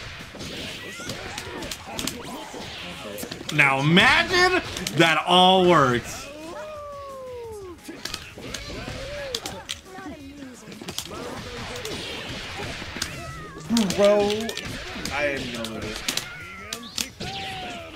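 Punches and kicks land with sharp, rapid smacks.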